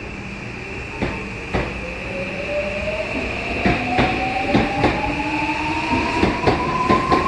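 Train wheels clack rhythmically over rail joints, speeding up.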